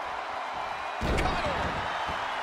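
A body slams heavily onto a wrestling ring mat.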